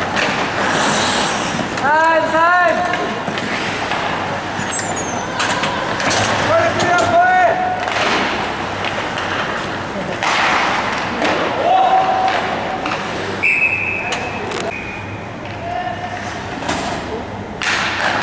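Hockey sticks clack against a puck and against each other.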